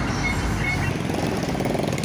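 Motorcycle engines idle and rev.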